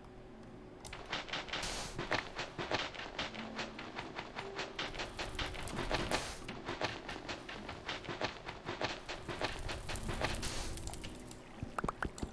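A shovel digs rapidly into soft earth, with quick scraping thuds.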